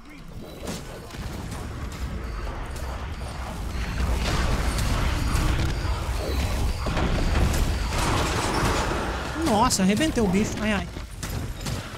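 Spells blast and crackle in a game battle.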